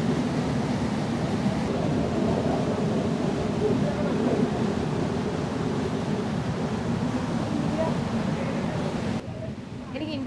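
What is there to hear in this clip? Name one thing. A waterfall roars loudly nearby.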